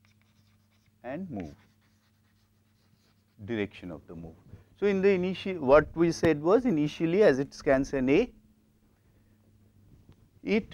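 A man speaks calmly, lecturing into a microphone.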